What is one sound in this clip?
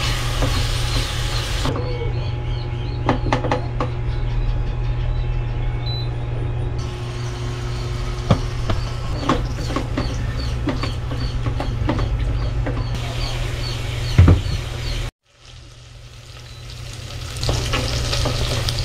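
Meat sizzles softly in a hot pot.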